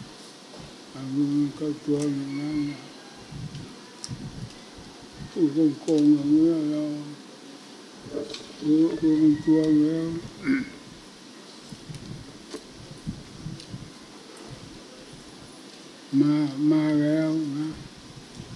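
An elderly man speaks slowly into a microphone, in short bursts with pauses.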